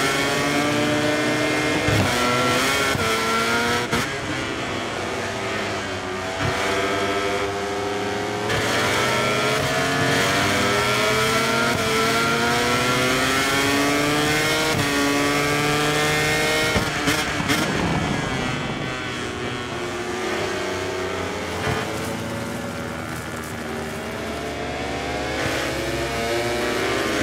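A motorcycle engine screams at high revs, rising and falling as it shifts gears.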